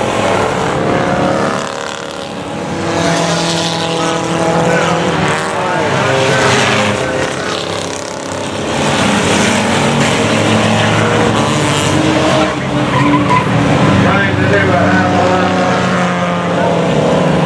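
Many race car engines roar and whine around a track outdoors.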